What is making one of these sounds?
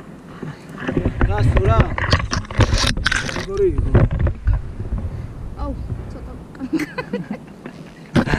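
A young woman laughs and talks excitedly close by.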